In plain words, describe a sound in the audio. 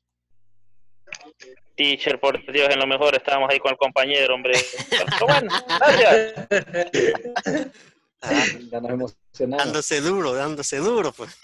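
Several men talk and laugh together over an online call.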